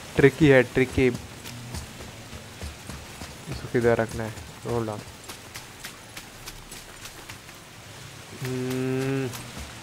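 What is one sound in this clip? Heavy footsteps crunch on loose stones.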